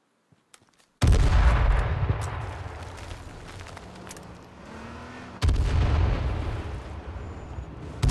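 A car engine roars and revs over rough ground.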